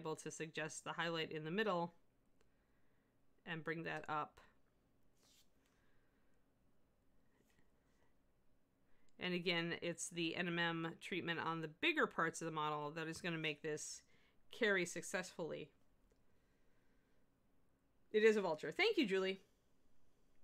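A middle-aged woman speaks calmly into a close microphone, in short bursts with pauses.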